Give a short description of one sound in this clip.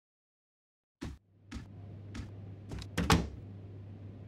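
A door opens and shuts with a knock.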